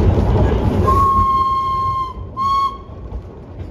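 A steam locomotive's whistle blows twice.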